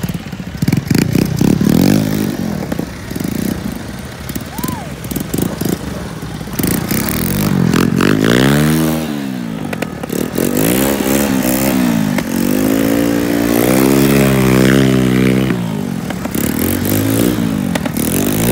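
Small engines drone and rev up and down close by.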